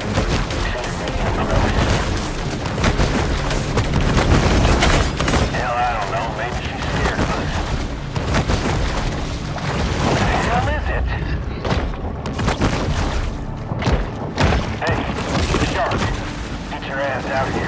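Water splashes and churns as a large fish thrashes at the surface.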